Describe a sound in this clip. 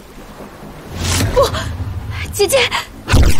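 A young woman calls out anxiously.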